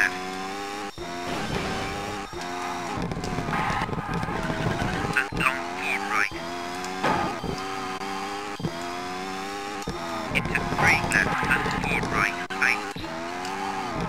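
A rally car engine revs hard and shifts through gears.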